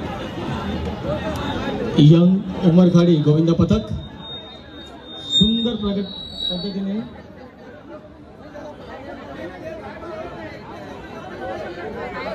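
A large outdoor crowd murmurs and chatters steadily.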